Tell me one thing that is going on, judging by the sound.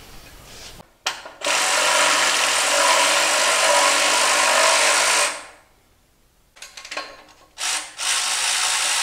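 A power saw whines loudly as it cuts.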